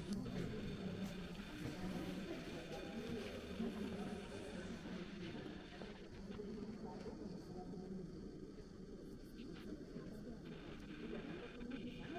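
A crowd of men and women murmurs and talks quietly in a large echoing hall.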